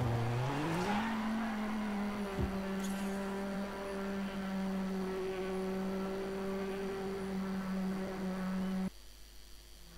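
A rally car engine idles with a steady hum.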